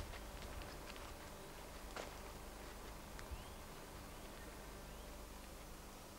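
Footsteps crunch softly on a dirt path.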